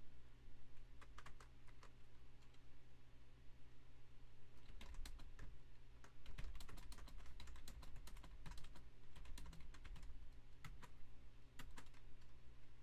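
Keys click on a keyboard in quick bursts of typing.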